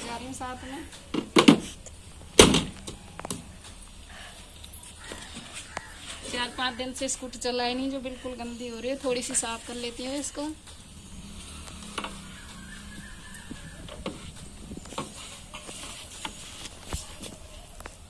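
A scooter's plastic seat knocks and clatters as it is handled.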